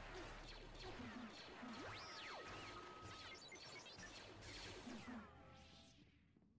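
Lightsabers hum and clash in a fast fight.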